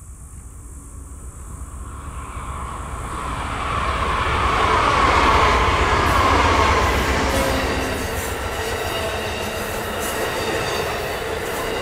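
A passenger train approaches and roars past close by.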